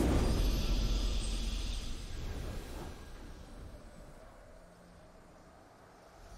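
A triumphant fanfare swells and fades out.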